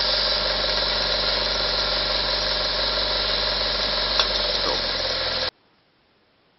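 A belt sander motor whirs steadily.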